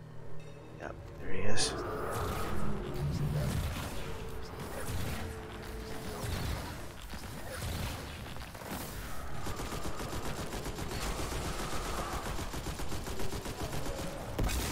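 Gunfire from a video game crackles in rapid bursts.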